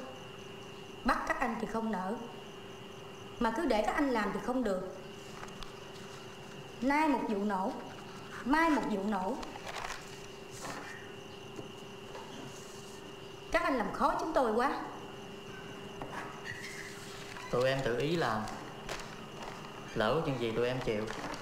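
A young woman speaks calmly and seriously, close by.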